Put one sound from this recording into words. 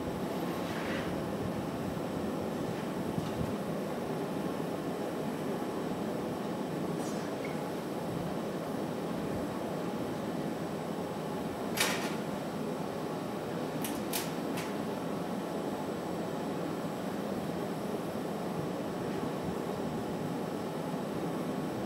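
A furnace roars steadily.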